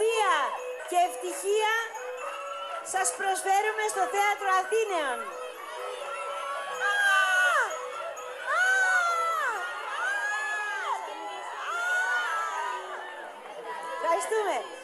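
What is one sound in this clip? A woman sings loudly into a microphone over loudspeakers in a large hall.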